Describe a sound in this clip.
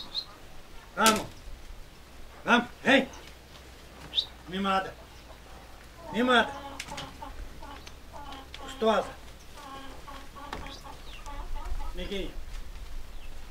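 A man calls out in short bursts to cattle.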